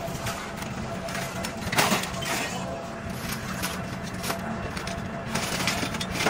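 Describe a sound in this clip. Scrap metal clatters as a man sorts it into a wheelbarrow.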